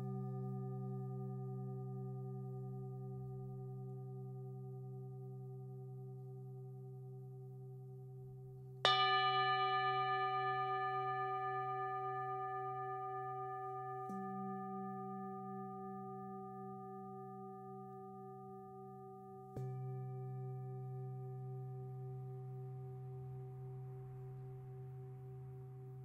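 Metal singing bowls ring with long, humming tones that slowly fade.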